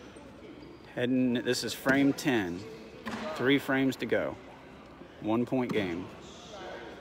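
A young man talks loudly nearby in an echoing hall.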